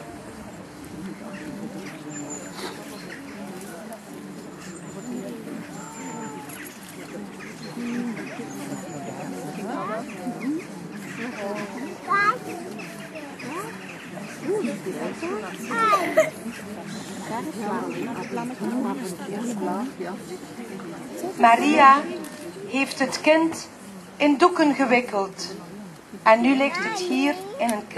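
An acoustic guitar is strummed gently outdoors.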